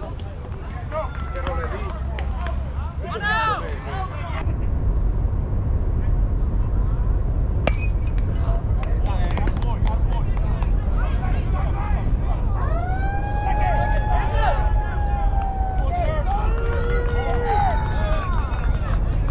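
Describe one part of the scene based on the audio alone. Men shout and call out across the field.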